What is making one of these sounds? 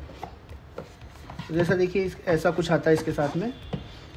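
A cardboard box lid slides open.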